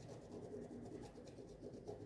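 A pen scratches as it marks fabric.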